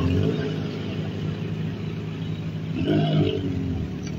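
A motorbike rides past.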